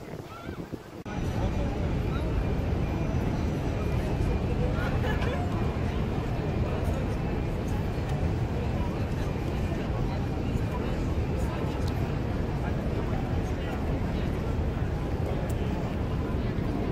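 A jet plane roars steadily high overhead.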